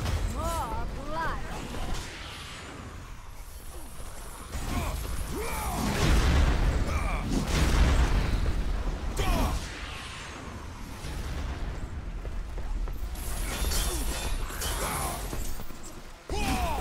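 Chained blades whoosh and strike enemies in a fight.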